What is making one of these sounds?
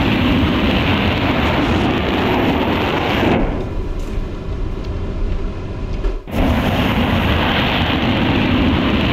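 A jet engine roars steadily at high power, briefly sounding muffled midway.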